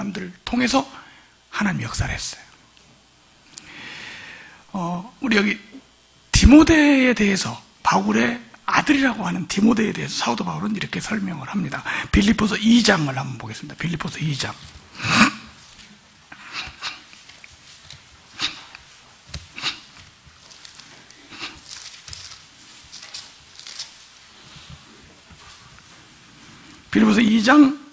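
A middle-aged man speaks with feeling into a microphone, heard through a loudspeaker.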